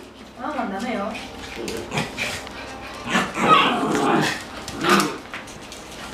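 Small dogs yap and whine excitedly up close.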